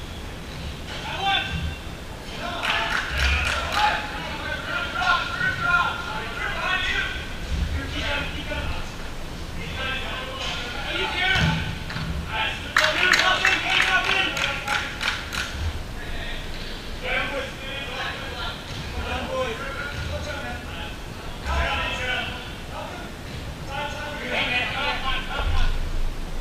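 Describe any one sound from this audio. Men shout and call out to each other across a large echoing indoor hall.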